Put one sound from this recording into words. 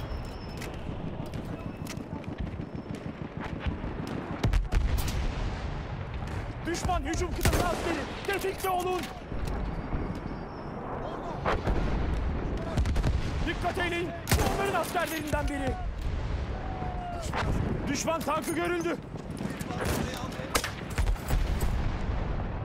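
Gunfire rattles in the distance.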